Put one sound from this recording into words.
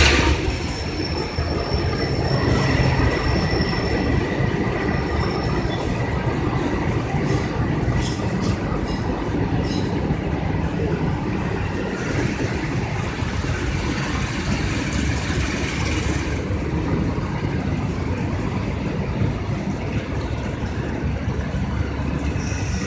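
A train rumbles and clatters steadily past, close by.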